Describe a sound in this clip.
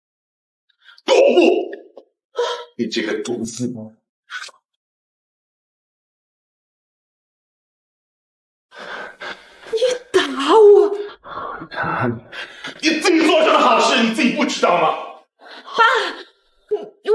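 A man speaks angrily and accusingly close by.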